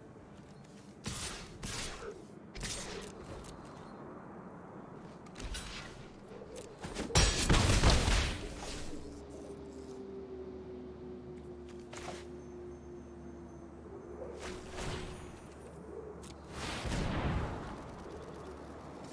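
Digital game sound effects swish and chime.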